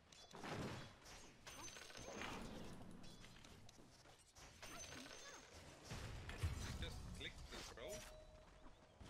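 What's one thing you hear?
Fantasy battle sound effects clash and burst in quick succession.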